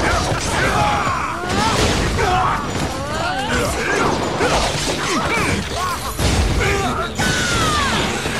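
Heavy blows thud against bodies.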